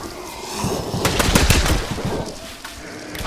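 Rapid gunfire rattles in a close burst.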